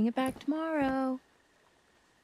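A young woman shouts with emotion.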